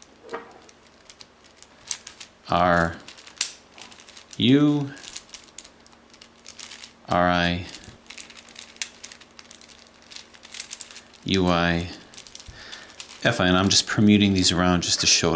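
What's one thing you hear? Plastic puzzle pieces click and rattle as they are twisted.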